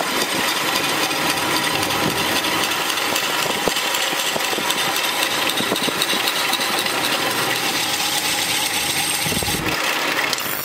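A sickle blade scrapes steadily against a spinning grinding wheel.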